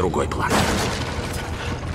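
Wooden boards smash and splinter.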